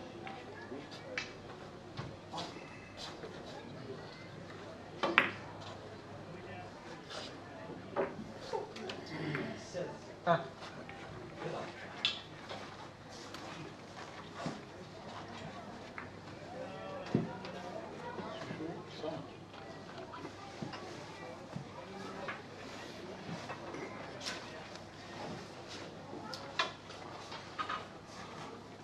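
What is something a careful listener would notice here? Billiard balls click against each other and the cushions.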